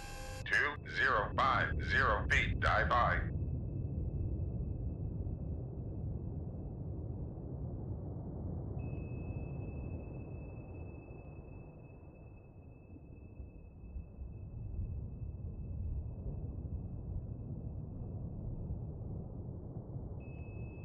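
A submarine's engine rumbles low and steady underwater.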